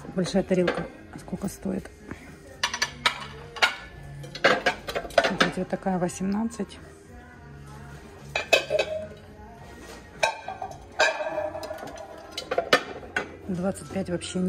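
Ceramic plates clink together as they are handled.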